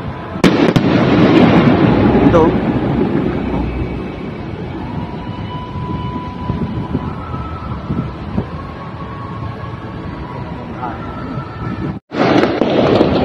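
A firework rocket whistles as it shoots up.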